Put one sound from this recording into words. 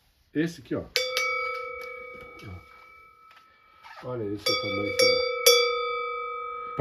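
A metal bell is struck several times and rings out with a long, bright hum.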